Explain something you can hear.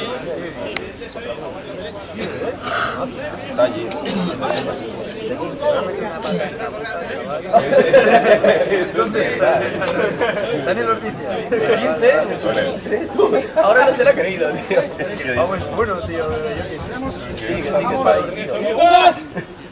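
Young men shout and call out to each other outdoors, some close by and some farther off.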